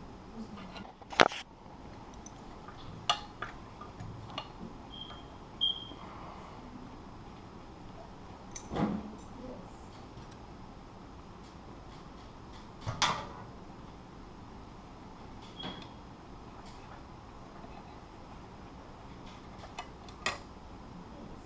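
Metal parts click and clack as they are handled up close.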